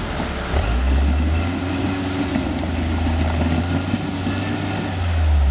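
An off-road buggy's engine rumbles low and idles, revving now and then.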